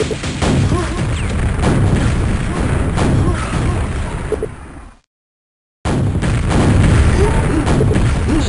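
A gun fires repeated shots.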